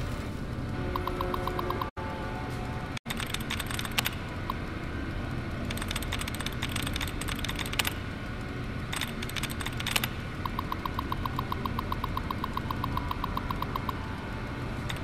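A computer terminal beeps rapidly as text prints out.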